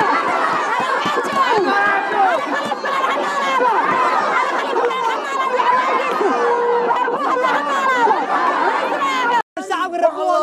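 A crowd of women cheer and shout in the background.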